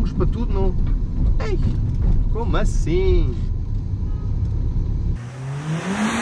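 A car engine rumbles low from inside the car.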